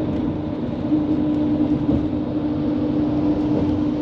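A truck passes close by.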